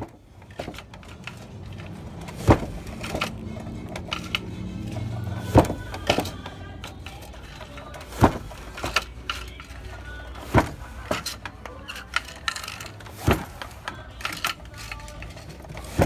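A wooden loom knocks and clacks at a steady rhythm.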